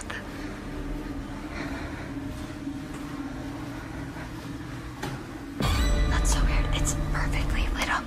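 Footsteps fall softly on a carpeted floor.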